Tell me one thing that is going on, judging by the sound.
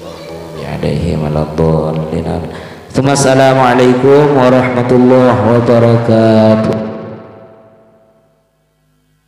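A man chants melodiously into a microphone, his voice loud and close, with a slight echo, then fades away.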